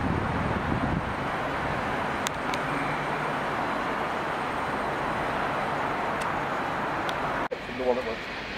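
An electric train approaches slowly around a curve.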